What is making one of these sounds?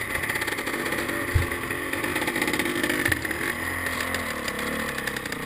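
Another dirt bike engine roars past nearby.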